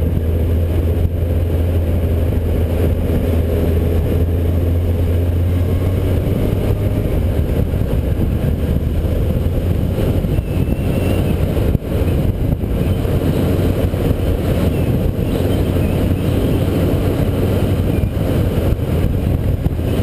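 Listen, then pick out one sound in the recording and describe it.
Wind buffets loudly across a moving microphone.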